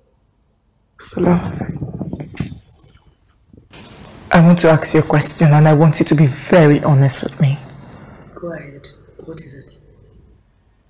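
Another young woman answers in a wary, questioning voice nearby.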